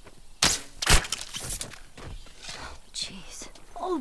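Footsteps crunch through grass and gravel.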